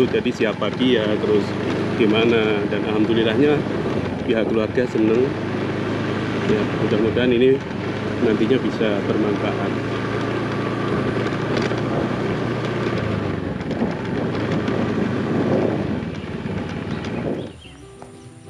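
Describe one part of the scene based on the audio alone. A motorbike engine runs steadily at low speed.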